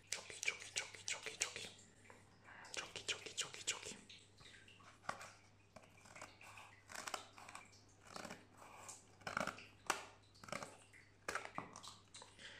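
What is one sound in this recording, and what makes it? Scissors snip through a foil wrapper.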